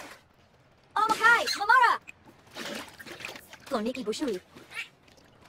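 A dolphin chirps and whistles.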